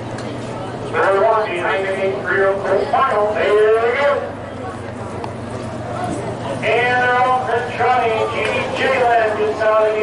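A man calls the race excitedly over a loudspeaker.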